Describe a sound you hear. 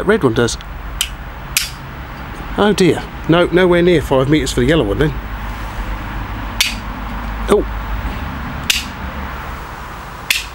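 A small plastic clicker clicks sharply a few times.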